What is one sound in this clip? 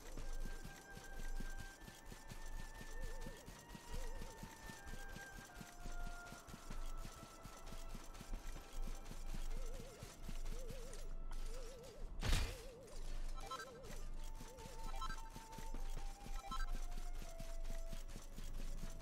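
Quick footsteps patter on grass and a dirt path.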